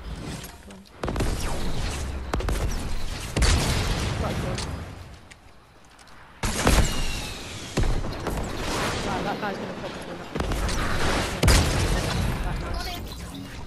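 Rockets explode with loud, rumbling booms.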